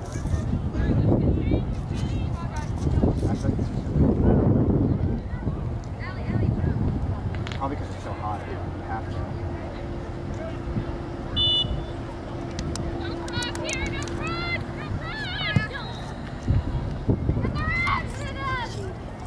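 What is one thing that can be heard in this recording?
Young players shout to each other across an open field, some distance away.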